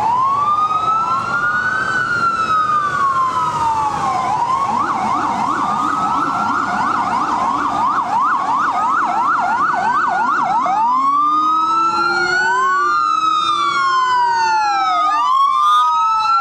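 Traffic engines rumble steadily in the street.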